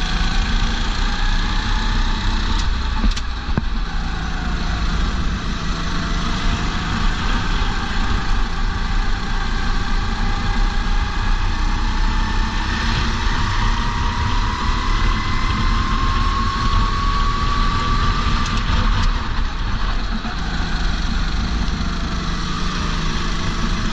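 A racing kart engine screams close up, rising in pitch as it accelerates down a straight.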